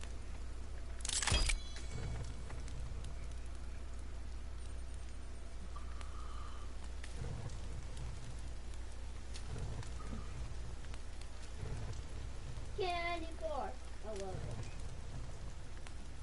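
A small campfire crackles.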